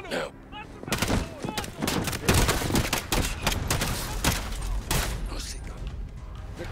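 Pistol shots ring out in rapid bursts with echoing cracks.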